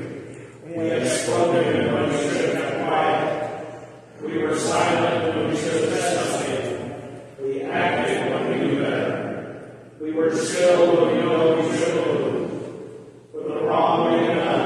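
A man speaks in long, slow phrases, echoing through a large hall.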